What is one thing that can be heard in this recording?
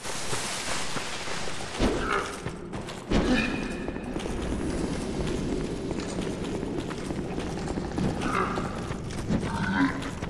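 Heavy armoured footsteps thud and clank on rocky ground.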